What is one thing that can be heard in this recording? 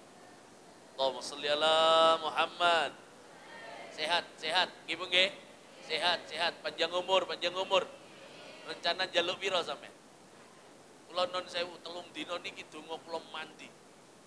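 A man speaks with animation through a microphone and loudspeakers.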